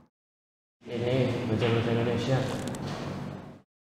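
A young man answers calmly up close.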